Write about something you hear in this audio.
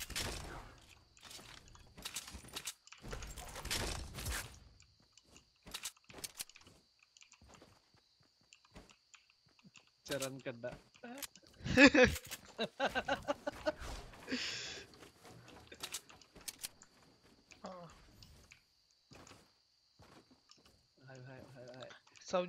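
Footsteps patter quickly over the ground.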